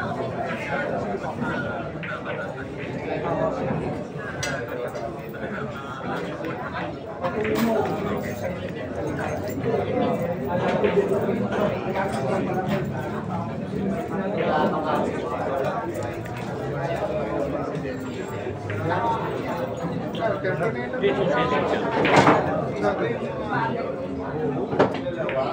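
A crowd of people chatters in a busy echoing hall.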